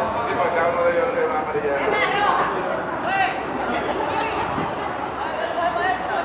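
Young men call out to each other on an open field.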